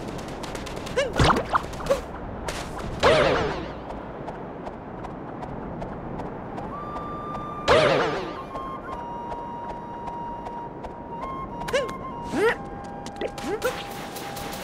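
A cartoon character lets out short jumping grunts and whoops.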